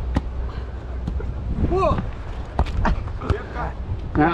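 A hand strikes a volleyball with a sharp slap.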